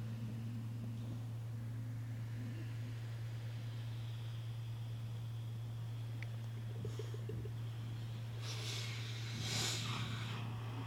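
Water laps gently against rocks.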